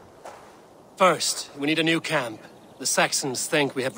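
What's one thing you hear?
A man speaks calmly and clearly, close to the microphone.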